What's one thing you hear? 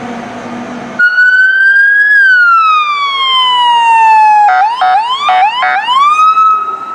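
A siren on a small fire truck wails up and down, then yelps rapidly.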